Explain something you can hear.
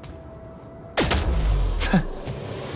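A loud energy blast bursts with a deep rumble.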